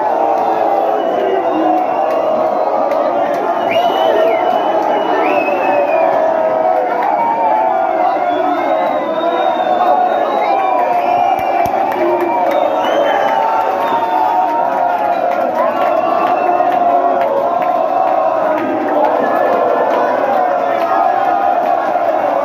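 A large crowd of men chants loudly in unison.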